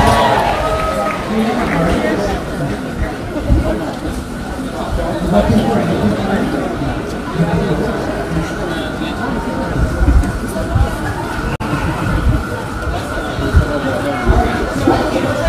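A crowd murmurs and talks in the background outdoors.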